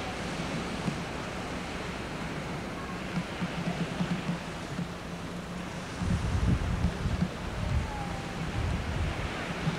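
Surf breaks on a shore.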